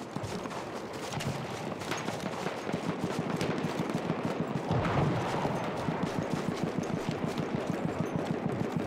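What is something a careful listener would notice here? Footsteps crunch quickly through snow as someone runs.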